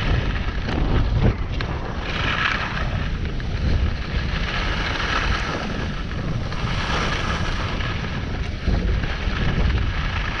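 Wind rushes past in loud, rumbling gusts.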